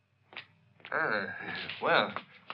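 A woman speaks close by.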